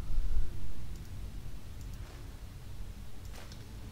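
Coins clink as gold is taken.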